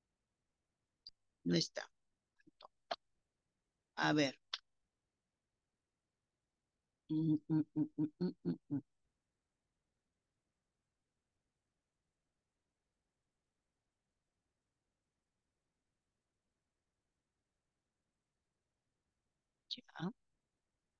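A woman speaks briefly through an online call.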